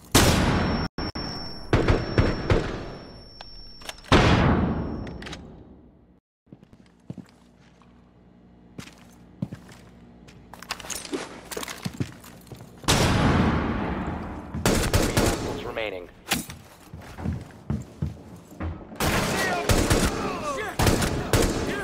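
Gunfire bursts loudly from a game, with echoing booms.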